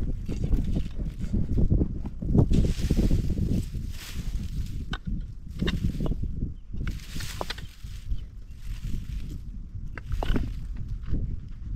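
A hand axe chops into dry soil and roots.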